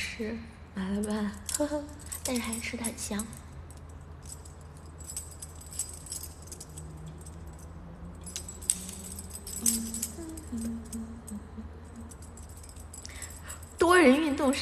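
A young woman speaks close to a phone microphone, playfully and with animation.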